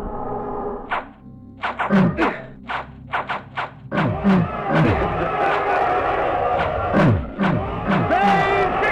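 A sword slashes and strikes repeatedly.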